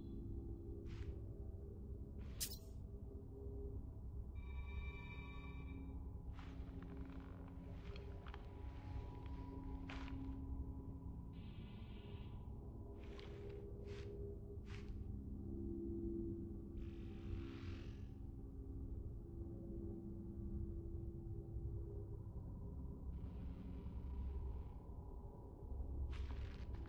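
Soft interface clicks sound as a menu cursor moves.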